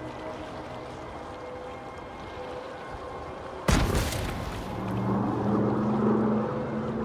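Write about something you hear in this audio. Water sloshes and splashes as a shark swims.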